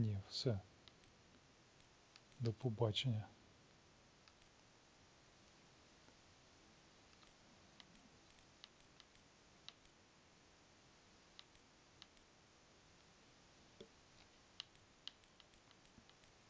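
Soft menu clicks tick now and then as a selection moves.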